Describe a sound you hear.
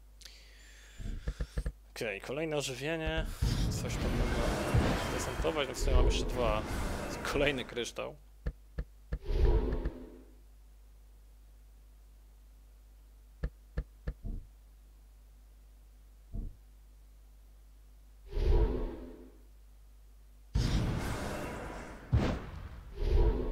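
Short clicks and whooshing effects sound as cards are played in a computer game.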